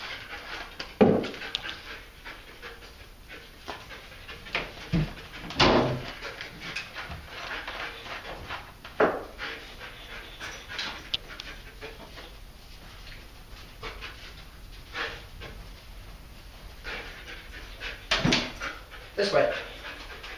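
Wooden furniture knocks and thuds as it is handled.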